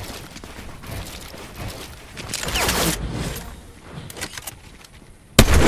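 Building pieces snap into place with quick clunks.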